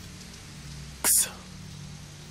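A man mutters in frustration, close by.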